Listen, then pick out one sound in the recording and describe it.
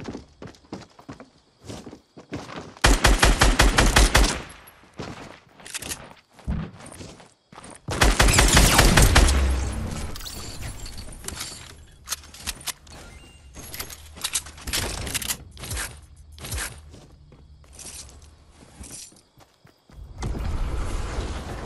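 Footsteps thud on wooden floors.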